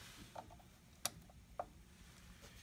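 A finger presses a button with a faint click.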